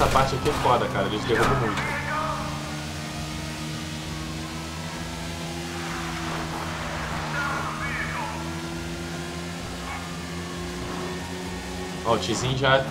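A motorcycle engine hums while cruising.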